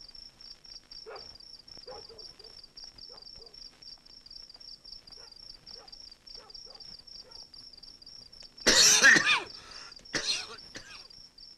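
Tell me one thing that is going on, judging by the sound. A man talks quietly at a doorway outdoors at night.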